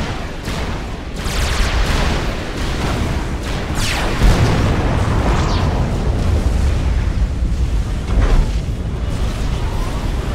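Explosions and gunfire from a battle rumble and crack repeatedly.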